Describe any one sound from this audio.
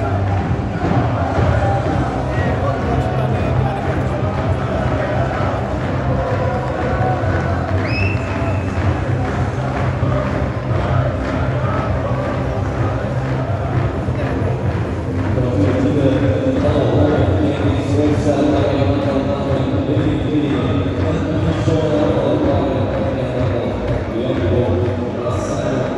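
A crowd of fans sings and chants loudly in a large open stadium.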